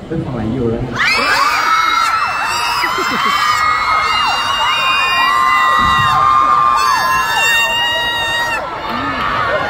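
A crowd of young fans shrieks and screams loudly.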